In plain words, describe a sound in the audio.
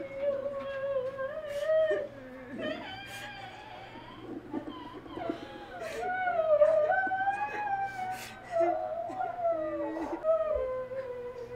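Women chant together in a slow, drawn-out voice.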